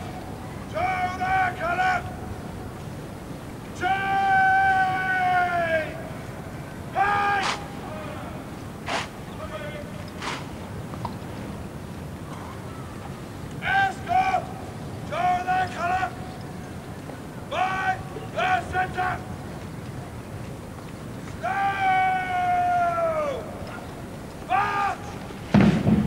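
A man shouts drawn-out drill commands loudly outdoors.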